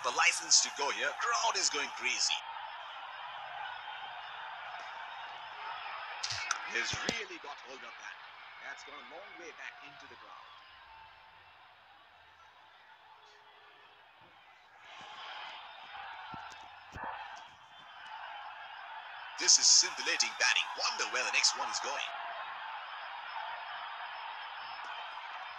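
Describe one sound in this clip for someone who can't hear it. A large crowd murmurs and cheers.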